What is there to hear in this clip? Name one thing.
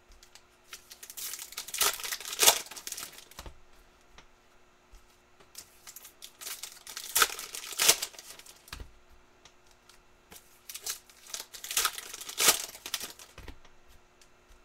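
Foil card packs crinkle and rustle as they are torn open.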